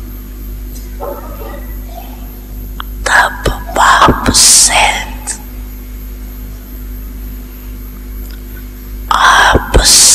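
An elderly woman speaks slowly and softly into a microphone, with long pauses.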